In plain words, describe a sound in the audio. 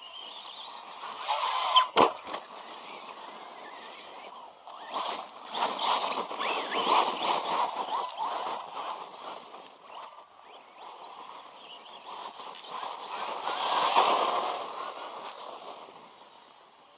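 Tyres of a remote-control car scrabble over loose dirt.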